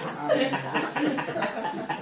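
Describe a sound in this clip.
An elderly man laughs nearby.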